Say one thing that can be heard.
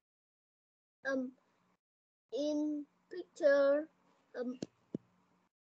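A young child speaks over an online call.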